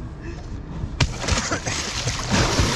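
A kayak splashes into the water.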